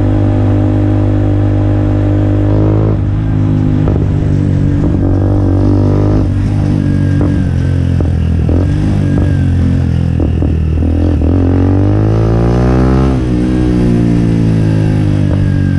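A motorcycle engine rumbles loudly close by and revs up and down.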